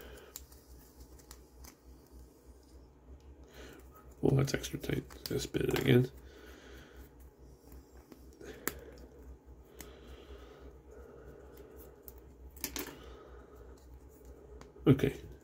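Plastic parts click and rattle as they are twisted off a frame.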